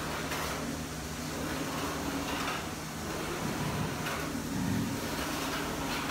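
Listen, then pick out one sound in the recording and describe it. A printer carriage whirs as it slides back and forth.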